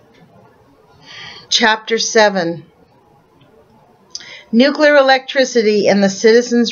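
A middle-aged woman speaks calmly into a microphone close by, as if reading out.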